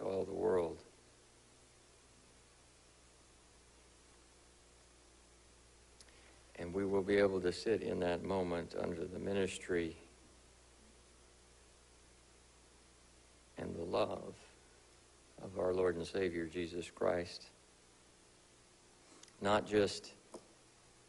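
A man speaks calmly in a room with a slight echo, with pauses between phrases.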